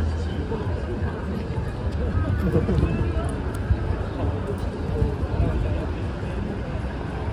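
Footsteps of many people walk on pavement.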